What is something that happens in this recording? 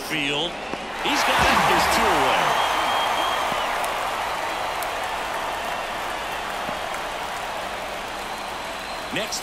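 A large crowd roars and cheers, then slowly fades.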